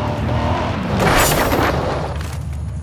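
A car crashes into a signpost with a loud thump.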